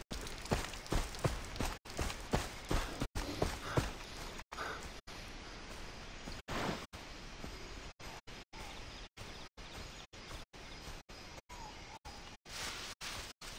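Footsteps rustle through tall grass and leaves.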